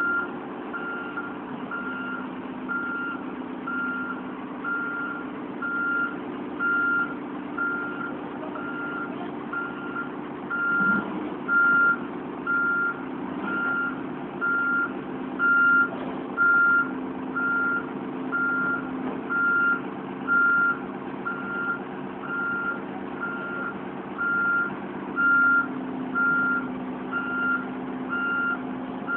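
A heavy diesel engine idles steadily close by.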